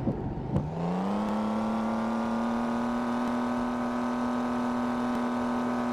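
A car engine revs up and then hums at a steady pitch.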